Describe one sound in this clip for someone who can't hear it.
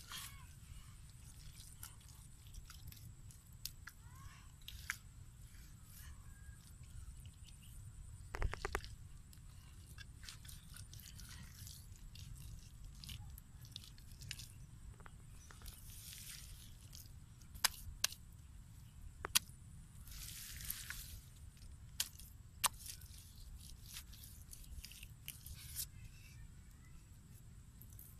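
Hands dig and squelch through wet mud.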